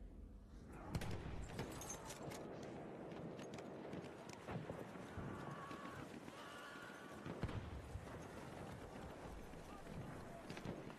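Gunshots crack repeatedly in the distance.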